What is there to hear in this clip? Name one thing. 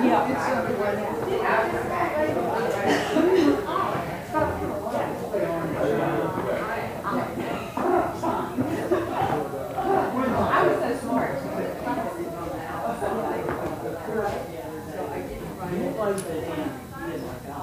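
Several adults chat and murmur nearby in a room with a slight echo.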